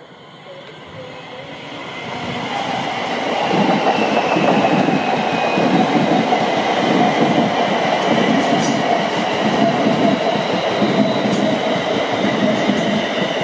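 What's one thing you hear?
A train approaches and rumbles past on the tracks, growing louder.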